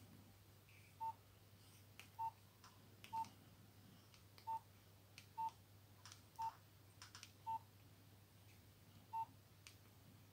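A mobile phone keypad beeps softly with short tones as keys are pressed.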